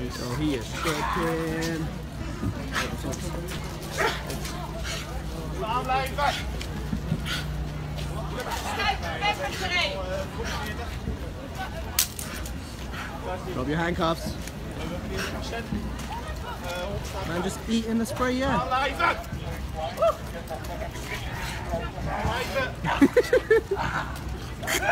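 Men and women in a crowd talk and shout nearby, outdoors.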